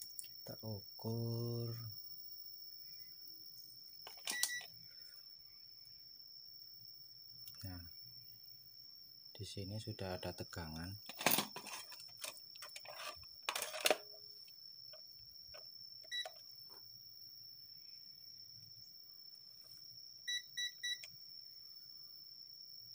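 Metal test probes tap and click against a circuit board.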